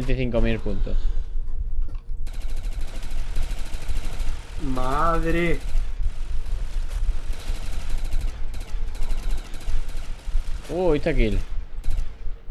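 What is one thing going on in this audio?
A man speaks close to a microphone with animation.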